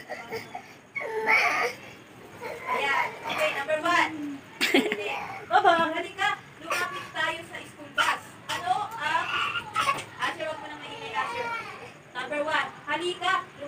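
A toddler cries and wails loudly close by.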